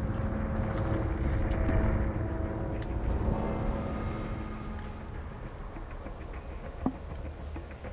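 Leaves rustle as someone pushes through dense bushes.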